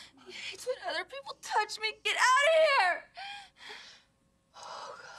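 A woman cries out and moans in distress nearby.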